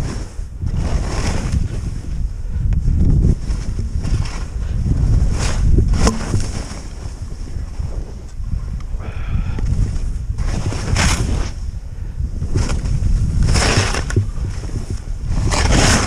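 Skis hiss and swish through deep powder snow.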